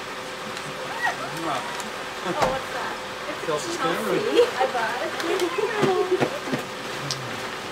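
Young women talk and laugh excitedly close by.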